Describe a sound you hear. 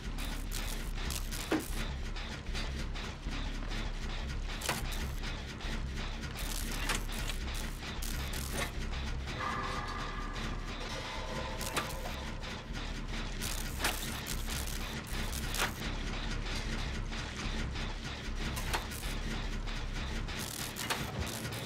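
Metal parts of an engine clatter and rattle as they are worked on.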